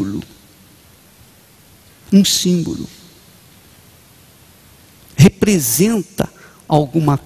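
An elderly man speaks slowly and expressively into a microphone, with long pauses.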